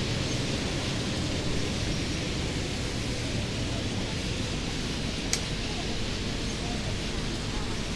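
Windscreen wipers swish back and forth.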